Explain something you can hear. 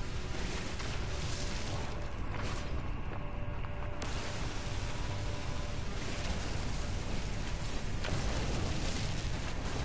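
A laser beam hums and crackles steadily.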